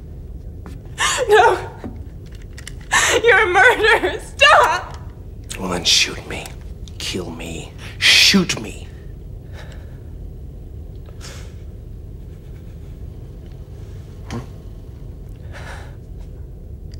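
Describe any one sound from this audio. A woman speaks tearfully and pleadingly, close by.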